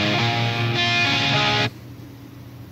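Music with guitar plays loudly.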